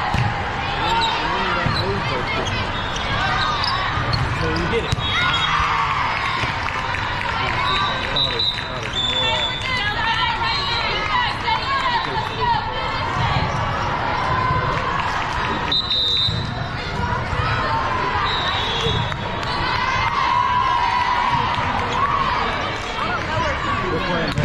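Many voices of players and spectators chatter and shout in a large echoing hall.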